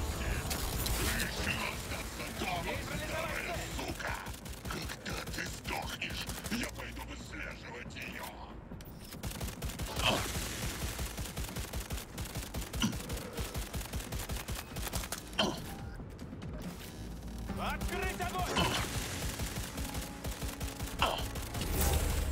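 A pistol fires quick bursts of sharp shots.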